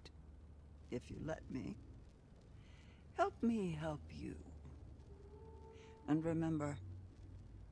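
A young woman speaks through a headset microphone.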